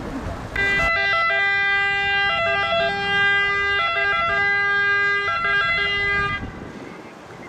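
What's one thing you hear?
An ambulance siren wails with a two-tone pattern close by.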